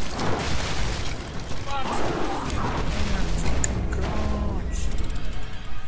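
Heavy blows and splashing clash in a loud fight.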